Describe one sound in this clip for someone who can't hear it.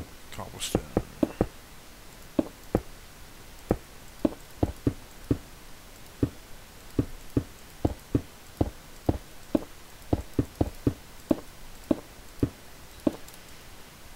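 Stone blocks crack and knock as they are broken and placed.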